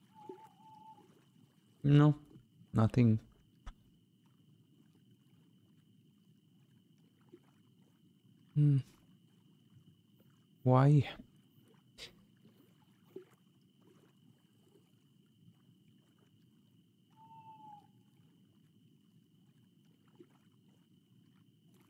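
Water laps gently and steadily.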